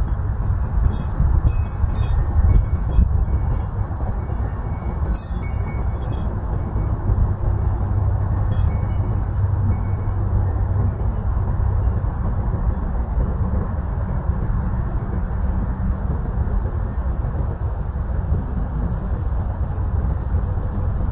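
Wind blows outdoors, rumbling steadily against the microphone.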